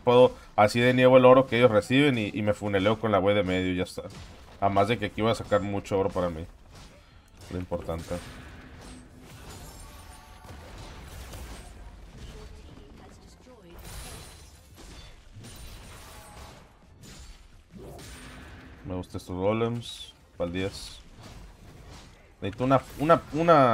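Video game combat effects crackle and thud.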